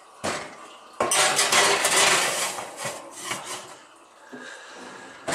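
A metal baking tray scrapes onto an oven rack.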